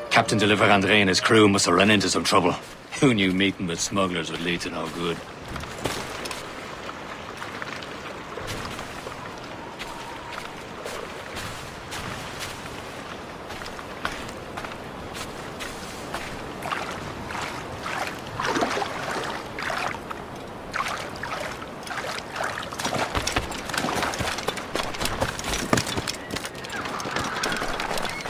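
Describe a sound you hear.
Footsteps crunch on snow and gravel.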